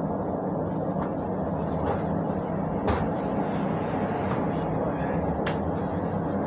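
The bus body rattles and clatters over bumps.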